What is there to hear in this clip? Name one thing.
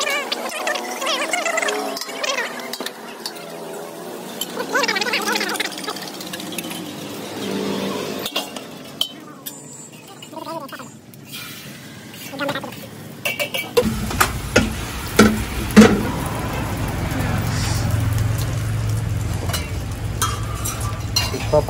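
Metal spatulas scrape and clack on hot griddles.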